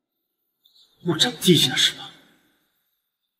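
A man speaks sharply, close by.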